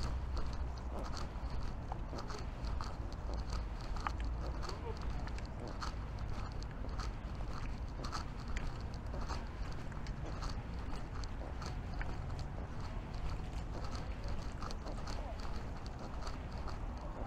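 Footsteps tap along a paved path at a steady walking pace.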